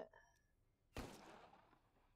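A revolver fires a single shot.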